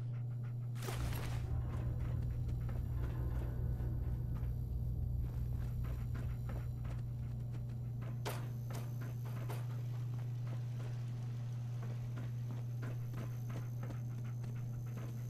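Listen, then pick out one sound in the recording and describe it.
Footsteps tread across a hard floor.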